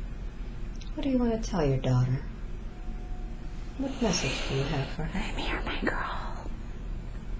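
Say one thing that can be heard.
A young woman murmurs sleepily close by.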